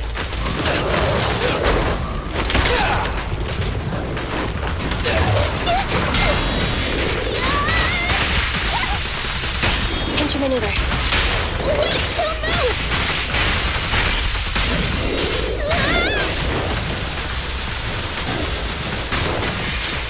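Game combat effects whoosh, slash and crash throughout.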